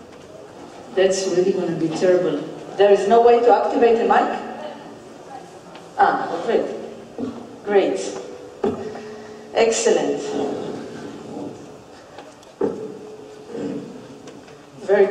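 A man speaks over a loudspeaker system in a large echoing hall, presenting calmly.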